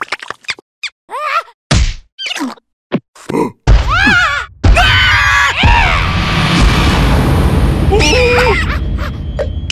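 A small creature squeals and chatters in a high, squeaky cartoon voice.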